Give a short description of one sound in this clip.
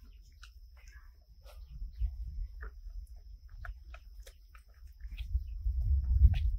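Leaves rustle outdoors in a light wind.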